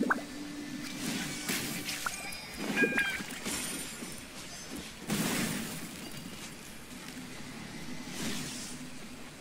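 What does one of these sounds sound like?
Weapon strikes whoosh and crackle in quick bursts.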